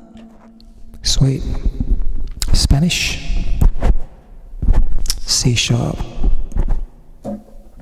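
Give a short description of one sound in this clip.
A man talks casually into a microphone close by.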